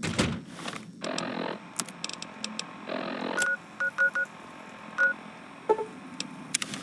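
Short electronic beeps and clicks sound from a handheld device.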